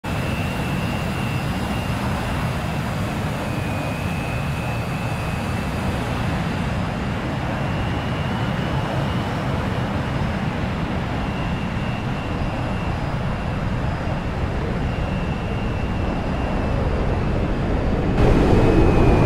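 A jet engine idles with a steady roar and a high whine.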